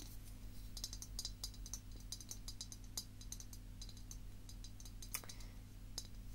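Fingernails tap and scratch on a ceramic piggy bank close up.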